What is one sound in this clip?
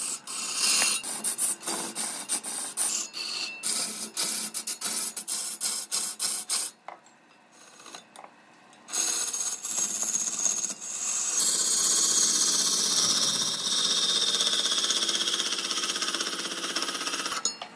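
A chisel scrapes and chatters loudly against spinning wood.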